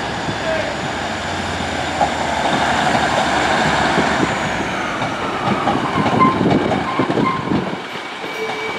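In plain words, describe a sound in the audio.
A train rolls slowly past with a rumbling hum.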